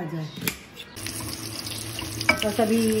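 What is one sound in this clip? Onions sizzle and fry in a pot.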